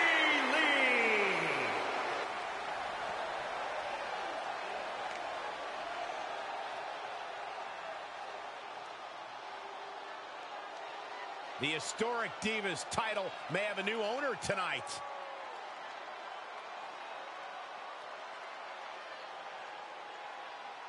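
A large crowd cheers steadily in a big echoing arena.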